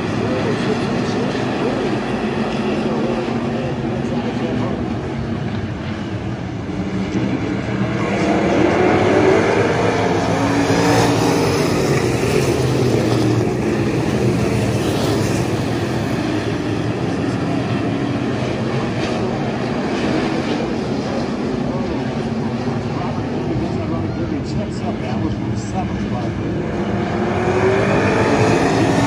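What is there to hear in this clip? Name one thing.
Race car engines roar and rev loudly.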